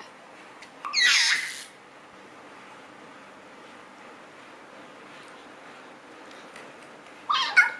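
A plastic toy rattles in a baby's hands.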